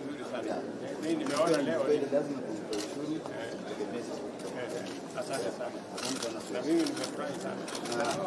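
A man laughs heartily up close.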